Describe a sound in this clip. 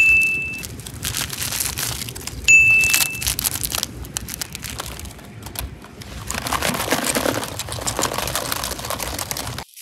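Plastic rustles and crinkles as things are handled in a bowl.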